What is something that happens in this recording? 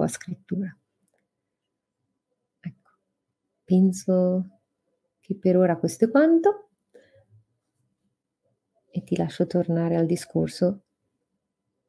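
A woman speaks with animation through an online call, in short bursts with pauses.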